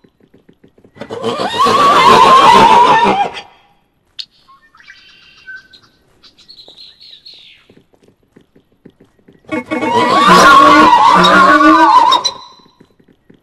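A donkey brays.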